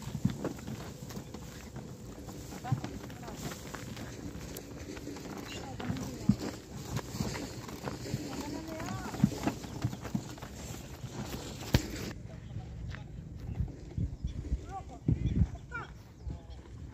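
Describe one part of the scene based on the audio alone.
A wooden cart rattles and creaks along a dirt track.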